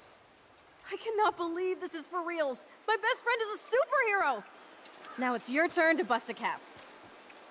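A young woman speaks excitedly, as if to a friend.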